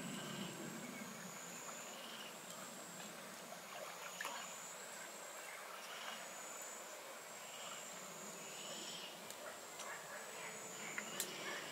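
A fishing reel clicks as a line is reeled in.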